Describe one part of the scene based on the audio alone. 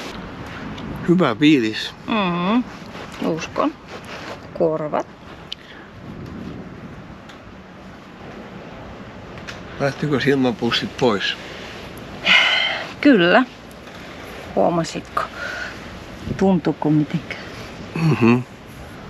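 A woman speaks calmly and closely in short phrases.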